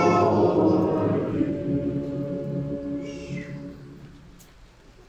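A large crowd sings together in an echoing hall, and the singing fades away.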